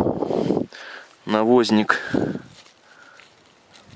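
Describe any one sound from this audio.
Leaves rustle as a hand reaches into the undergrowth.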